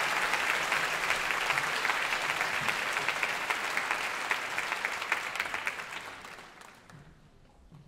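An audience applauds loudly in a large hall, then the applause fades away.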